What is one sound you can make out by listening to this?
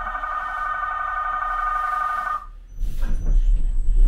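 Sliding doors rumble shut.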